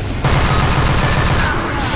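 A gun fires in rapid shots.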